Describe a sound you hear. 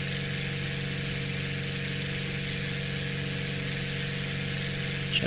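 A propeller engine drones steadily at idle.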